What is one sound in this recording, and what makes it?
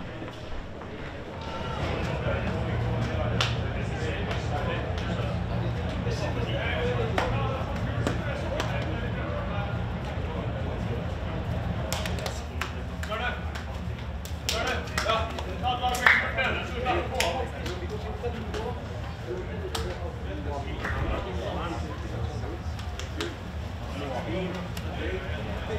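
Young men chatter and call out to each other nearby.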